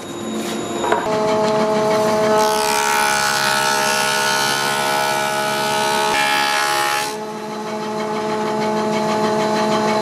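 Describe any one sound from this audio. A wood planer machine hums steadily.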